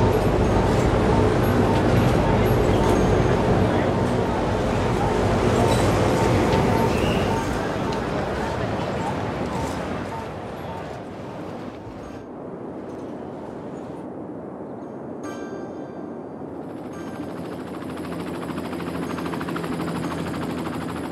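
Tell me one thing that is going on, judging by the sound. City traffic hums and rumbles steadily, growing quieter partway through.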